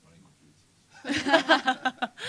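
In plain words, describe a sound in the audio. A woman laughs heartily nearby.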